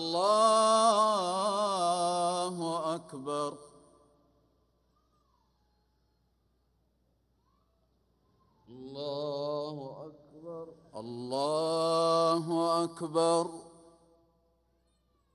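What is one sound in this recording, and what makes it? A man chants in a long, drawn-out melodic voice through loudspeakers, echoing across a large open space.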